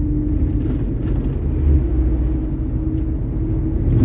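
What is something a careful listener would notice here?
A truck rushes past in the other direction.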